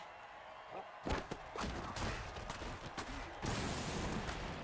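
Game players collide and tackle with heavy thuds.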